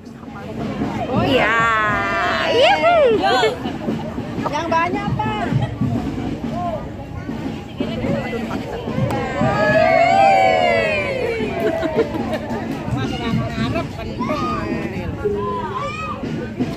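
A crowd of men and women chatters and calls out nearby outdoors.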